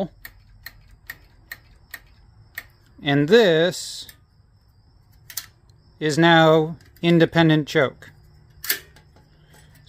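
Small metal parts click lightly.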